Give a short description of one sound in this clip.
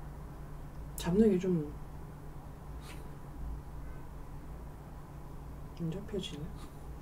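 A young woman speaks briefly and softly up close to a microphone.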